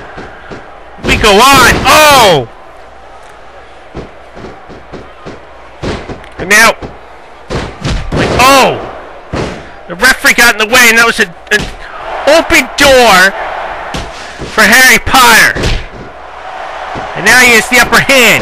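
Punches land with dull thuds.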